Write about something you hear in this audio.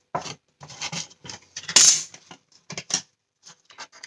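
Plastic scissors clatter as they are picked up from a table.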